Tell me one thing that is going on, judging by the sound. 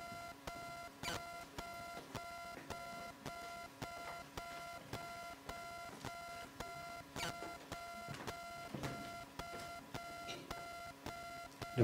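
Electronic music with a steady, repeating beat plays through loudspeakers in a large hall.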